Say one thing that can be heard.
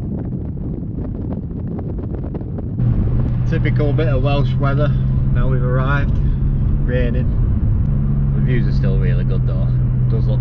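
A car engine drones steadily as the car drives along.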